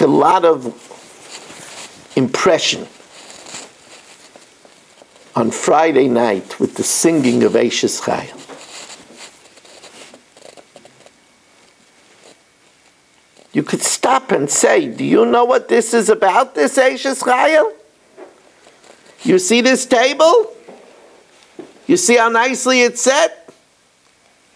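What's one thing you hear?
An elderly man speaks calmly and with animation, close by, in bursts with pauses.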